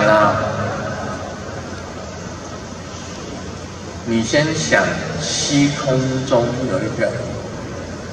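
An elderly man chants into a microphone, heard through a loudspeaker with a slight echo.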